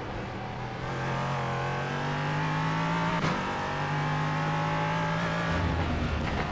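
A racing car engine roars steadily, its pitch climbing and then dropping briefly with a gear change.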